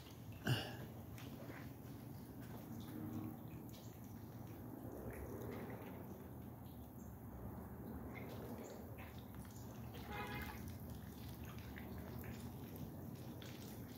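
Ducks paddle gently through calm water.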